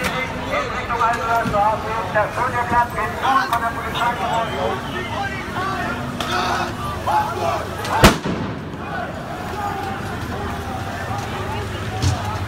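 A water cannon sprays with a steady hiss.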